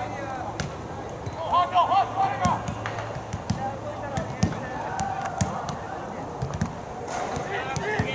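Players shout to each other across an open field, some way off.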